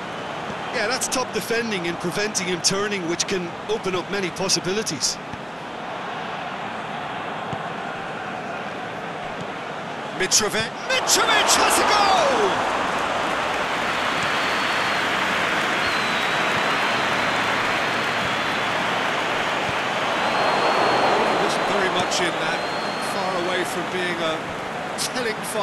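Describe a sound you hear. A large crowd roars steadily in a stadium, swelling louder partway through.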